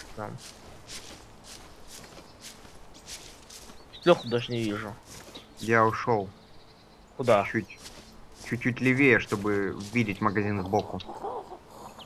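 Footsteps crunch steadily through dry leaves and undergrowth.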